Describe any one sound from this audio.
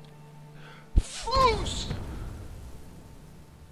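A forceful shout bursts out with a booming, rushing blast that echoes away.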